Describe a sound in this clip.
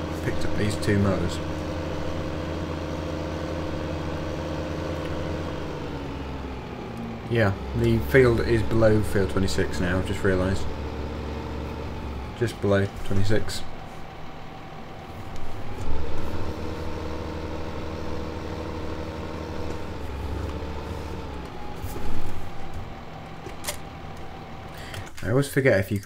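A tractor engine hums steadily and changes pitch as it speeds up and slows down.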